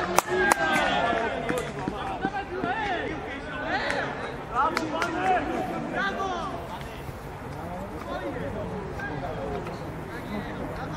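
Young men shout and cheer excitedly outdoors.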